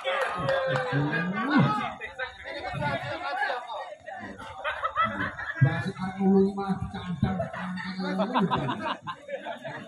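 Young women players call out to each other.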